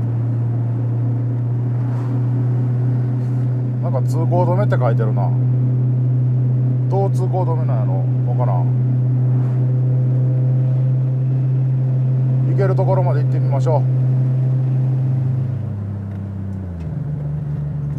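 A car engine drones steadily from inside the cabin, then eases off as the car slows.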